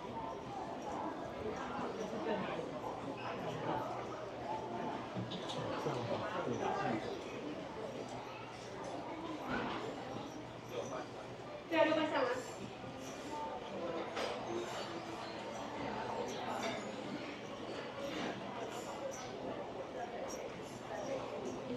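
Distant voices murmur faintly through a large echoing indoor hall.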